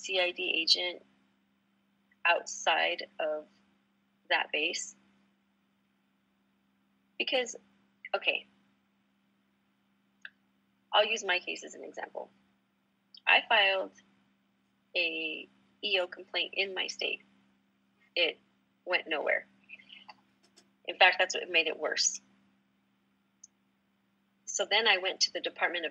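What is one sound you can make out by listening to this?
An adult woman speaks calmly and clearly, close to a microphone, with pauses.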